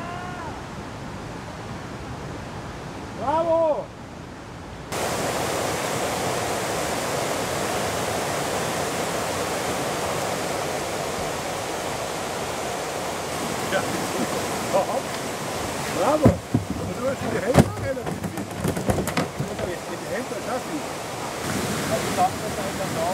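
River rapids rush and roar loudly.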